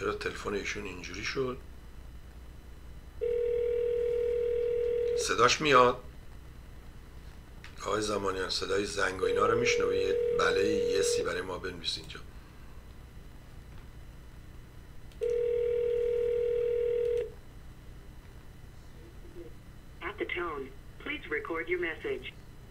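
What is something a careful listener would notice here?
An elderly man speaks with animation into a microphone.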